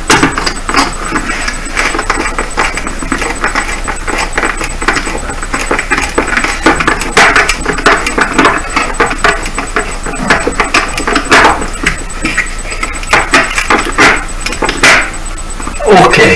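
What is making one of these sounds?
A metal wire rasps and clicks against a wooden board.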